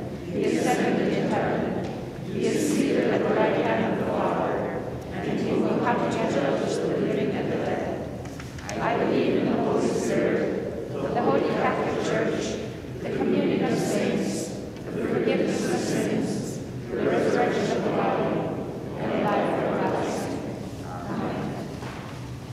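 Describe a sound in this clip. A congregation of men and women recites together in unison in a large echoing hall.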